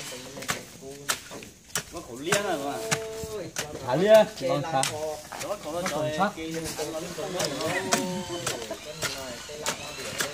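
A hoe digs and scrapes into soil.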